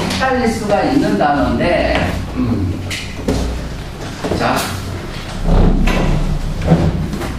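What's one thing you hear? A young man speaks clearly and steadily, as if teaching.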